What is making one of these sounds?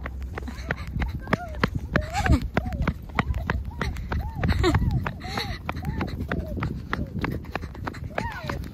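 Small footsteps patter quickly on a running track.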